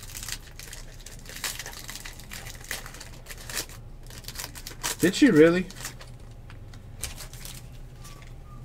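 Foil wrappers crinkle and tear as packs are ripped open.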